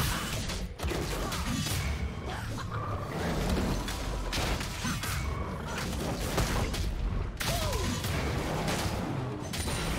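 Game characters' weapons clash with sharp hits.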